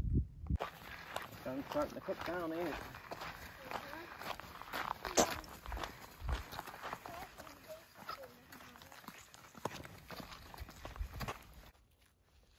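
Footsteps scuff on rock outdoors.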